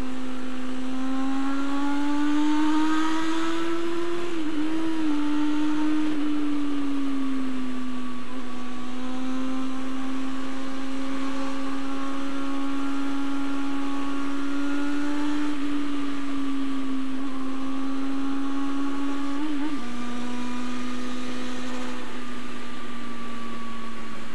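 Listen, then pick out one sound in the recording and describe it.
A motorcycle engine hums steadily at cruising speed, its pitch rising and dipping slightly.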